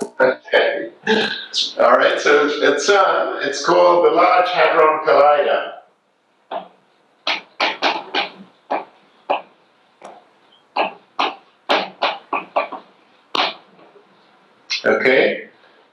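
A man speaks with animation, as if lecturing.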